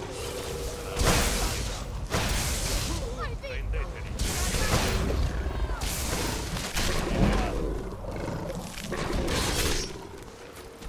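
Crackling lightning bursts sizzle and snap repeatedly.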